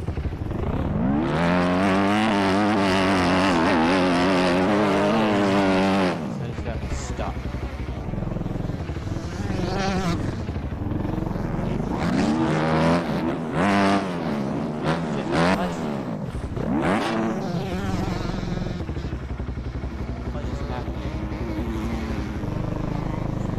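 A motorcycle engine revs up and down as it races.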